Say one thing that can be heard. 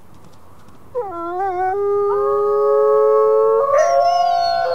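Wolves howl long and loud in chorus.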